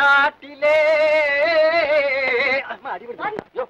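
A man sings loudly, holding long wavering notes.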